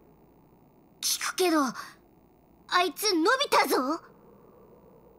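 A childlike voice asks a question with surprise.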